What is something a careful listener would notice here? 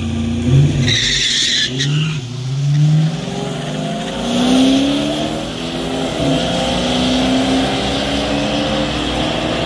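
Two car engines roar and rev hard as they accelerate away.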